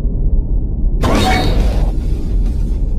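A puff of smoke bursts with a quick whoosh.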